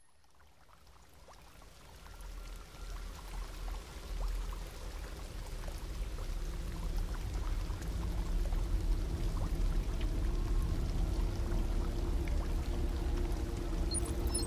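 Water drips and splashes onto a wet surface.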